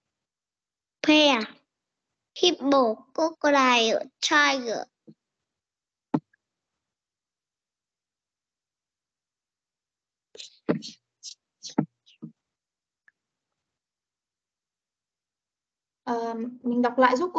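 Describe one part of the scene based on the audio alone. A woman speaks clearly through an online call, reading out words.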